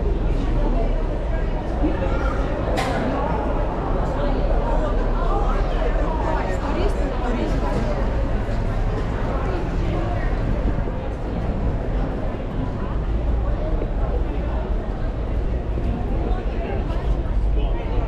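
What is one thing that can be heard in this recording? A crowd of people chatters all around, outdoors.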